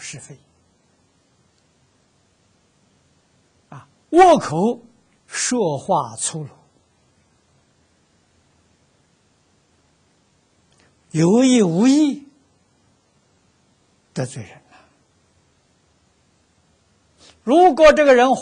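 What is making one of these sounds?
An elderly man speaks calmly into a close microphone, with long pauses.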